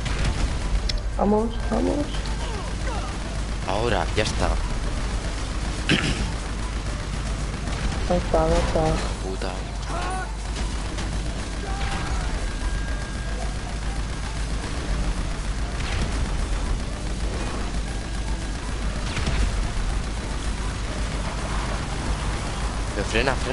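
A man talks casually through a microphone.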